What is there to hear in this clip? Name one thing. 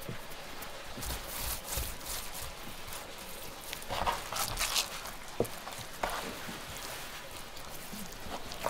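Hands pat and press wet raw fish with soft squelching sounds.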